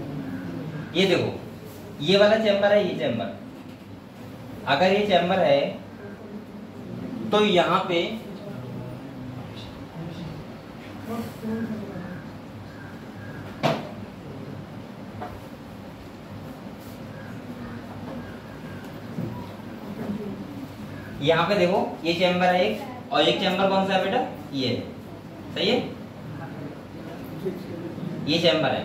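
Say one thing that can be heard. A man speaks calmly into a close microphone, explaining in bursts with pauses.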